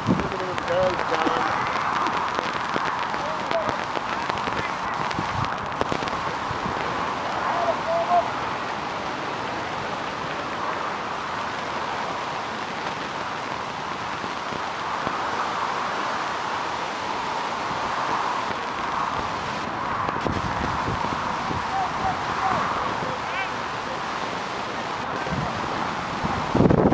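Rugby players shout and call to each other across an open field, distant.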